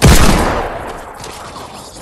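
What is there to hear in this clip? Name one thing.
A loud blast booms and quickly fades.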